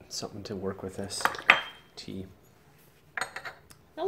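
A porcelain cup clinks on a tea tray.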